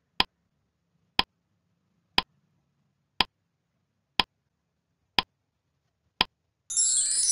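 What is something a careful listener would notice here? A countdown timer ticks once a second.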